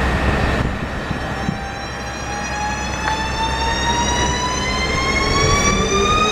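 An electric train's motor whines, rising steadily in pitch as the train pulls away.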